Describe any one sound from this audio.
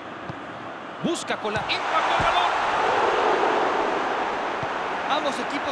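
A crowd's roar swells loudly as the ball nears the goal.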